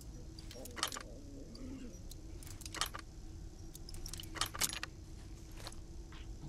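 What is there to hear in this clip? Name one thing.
A dial clicks as it turns on a metal safe lock.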